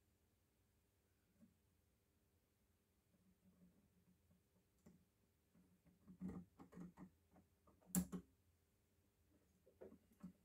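Metal tools clink and knock against metal parts.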